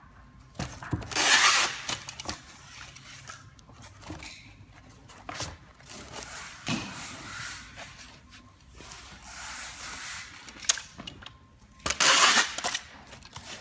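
Packing tape screeches as it is pulled off a roll.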